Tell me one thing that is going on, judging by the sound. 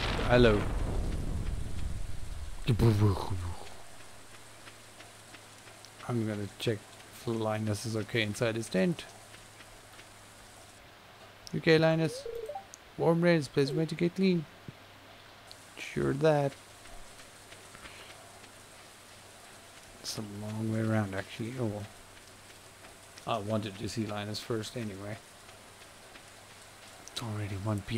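A young man talks casually into a close microphone, in bursts with pauses.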